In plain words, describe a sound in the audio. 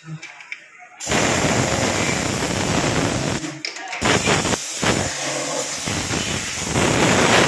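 An aerosol spray hisses loudly in bursts.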